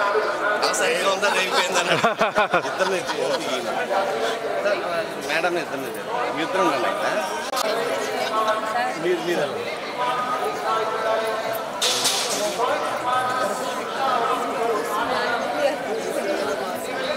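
A middle-aged man speaks with animation close to the microphone.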